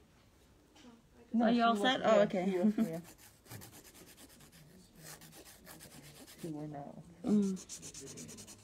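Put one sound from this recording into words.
A nail file scrapes back and forth across a fingernail in quick strokes.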